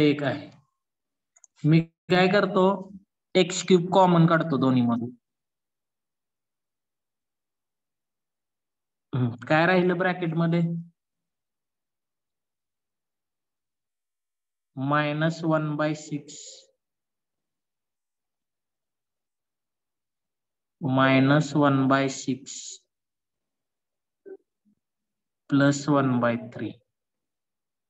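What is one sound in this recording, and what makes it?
A man explains calmly in short phrases, close to a microphone.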